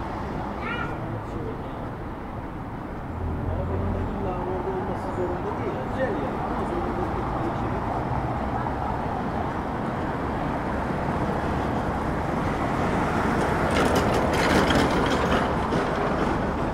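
Distant street noise hums steadily outdoors.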